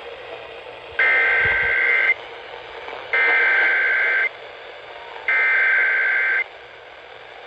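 A radio sounds three loud beeping alert bursts.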